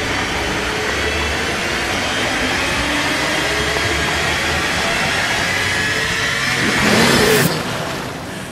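Water bubbles and churns in a muffled underwater rush.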